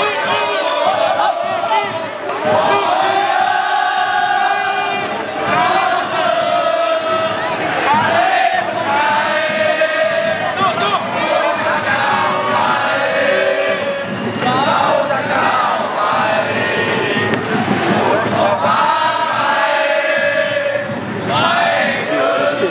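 A crowd of fans chants and sings loudly in unison outdoors.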